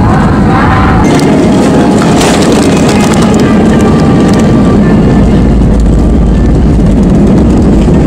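Landing wheels thump onto a runway and rumble along it.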